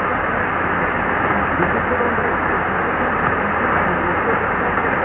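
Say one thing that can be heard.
A shortwave radio plays steady hissing static through its loudspeaker.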